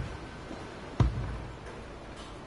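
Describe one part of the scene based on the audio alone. Something lands with a heavy thud.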